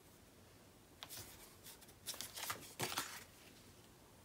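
Paper rustles and slides as hands smooth it flat.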